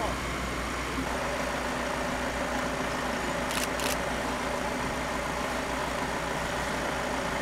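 A fire engine idles steadily nearby.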